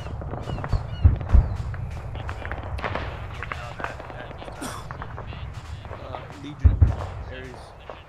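Heavy explosions boom in the distance.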